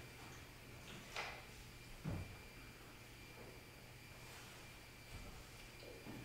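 Glass and metal vessels clink softly.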